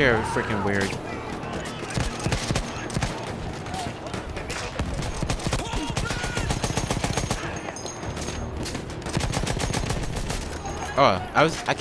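A heavy machine gun fires rapid bursts close by.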